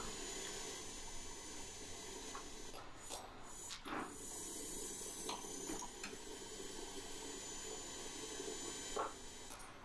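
Metal tongs clink and scrape as they are handled.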